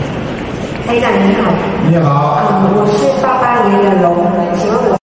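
A young woman speaks through a microphone.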